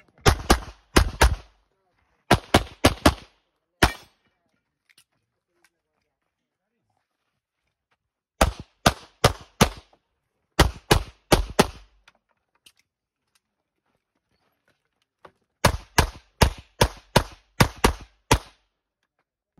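A pistol fires rapid bursts of loud, sharp shots outdoors.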